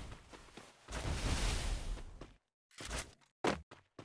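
Footsteps patter on grass.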